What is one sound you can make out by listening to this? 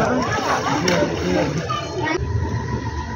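Water splashes from a fountain into a pool.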